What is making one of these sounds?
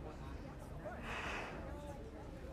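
A woman sighs softly close by.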